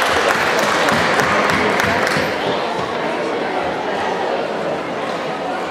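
An audience claps and cheers in a large echoing hall.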